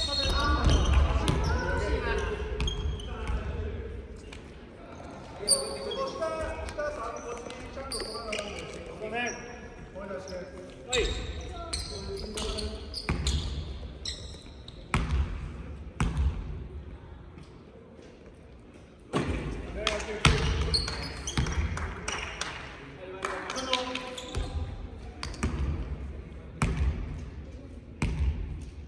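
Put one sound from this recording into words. Young men call out across a large echoing gym.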